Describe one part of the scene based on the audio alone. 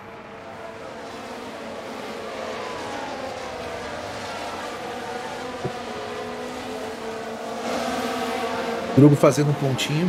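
Racing car engines whine and drone as they pass.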